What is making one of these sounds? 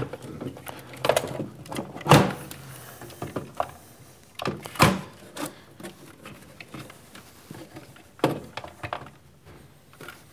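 Plastic parts click and snap into place on a rail.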